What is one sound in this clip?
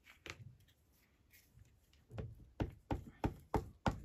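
A plastic glue bottle taps and clicks against the table.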